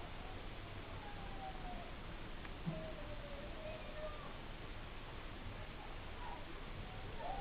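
A baby whimpers and fusses close by.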